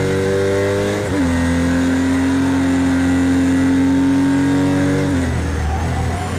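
A racing car engine drops in pitch briefly as it shifts up a gear.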